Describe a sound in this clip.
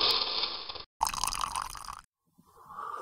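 Coffee pours into a cup.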